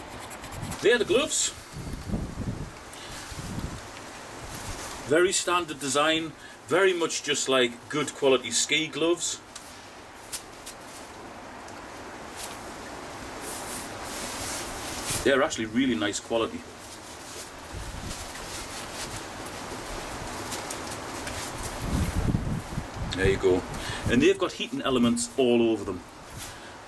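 A man talks calmly and close by, in bursts with pauses.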